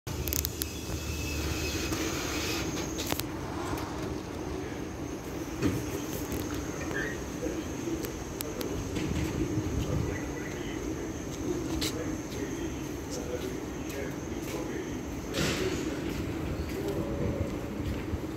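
A tram idles with a steady electric hum.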